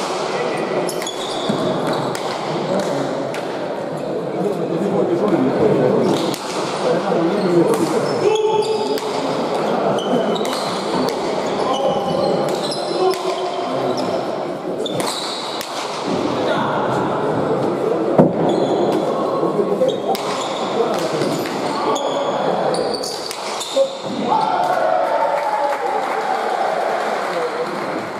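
A ball smacks hard against a wall and echoes through a large hall.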